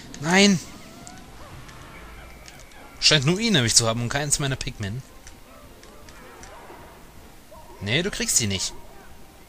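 Tiny video game creatures chirp and squeak in high voices.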